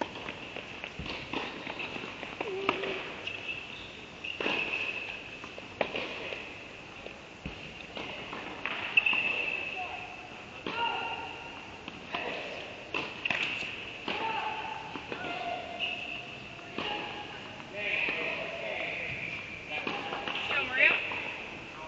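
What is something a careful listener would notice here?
Tennis balls are struck with sharp pops in a large echoing hall.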